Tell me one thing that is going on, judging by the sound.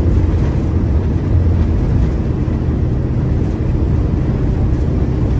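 A truck's engine drones steadily from inside the cab.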